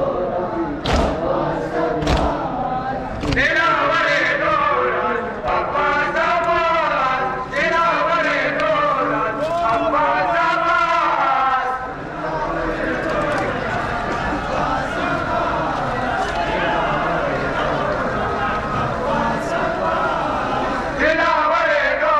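Men beat their chests in sharp, heavy slaps.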